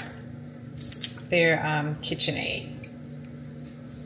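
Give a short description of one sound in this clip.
Kitchen scissors snip close by.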